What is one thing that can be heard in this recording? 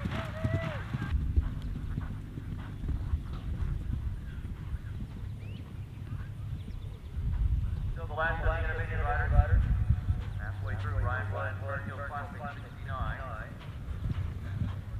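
A horse's hooves thud on grass as it gallops.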